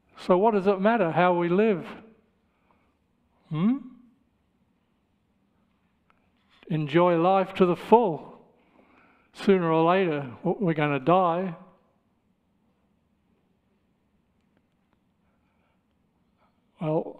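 An elderly man speaks slowly and earnestly into a microphone, with long pauses.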